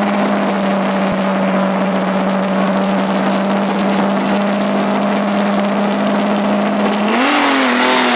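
A car engine idles with a steady rumble.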